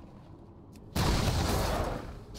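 A magic spell bursts with a loud whooshing crackle.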